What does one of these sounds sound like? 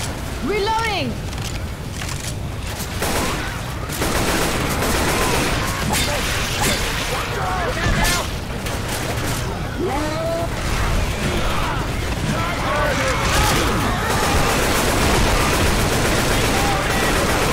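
Zombies snarl and shriek nearby.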